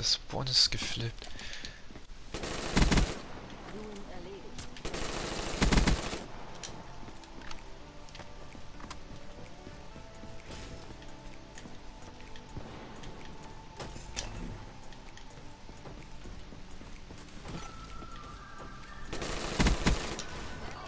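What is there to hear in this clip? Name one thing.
Automatic gunfire rattles in loud, rapid bursts.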